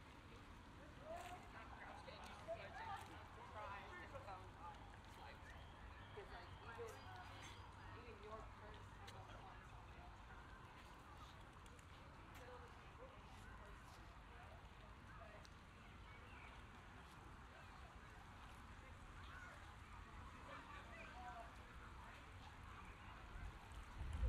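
Men and women chat at a distance outdoors.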